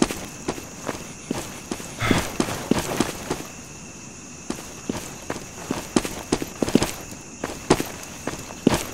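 Footsteps crunch steadily over dry leaves and dirt.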